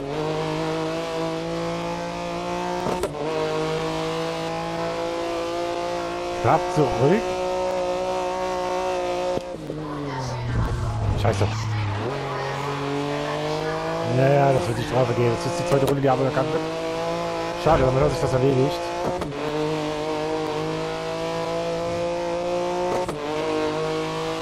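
A prototype race car engine screams at full throttle through high gears.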